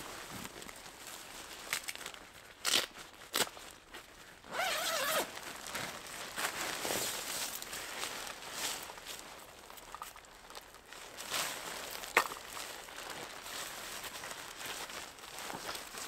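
Nylon fabric rustles and crinkles as it is handled.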